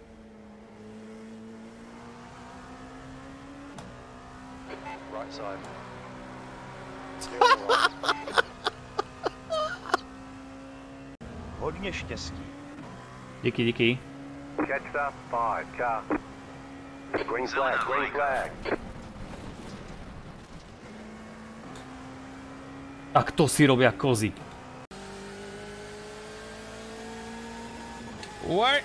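A racing car engine drones and changes pitch as gears shift.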